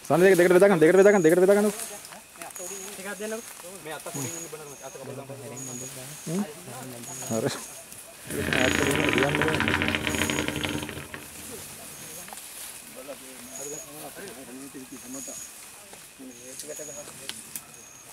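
Several men talk in low voices nearby.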